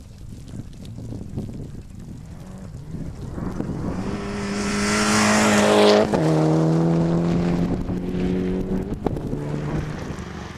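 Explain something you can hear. A rally car engine roars closer, then drops pitch as it speeds past.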